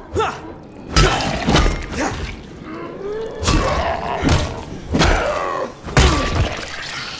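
Heavy blows thud wetly into a body.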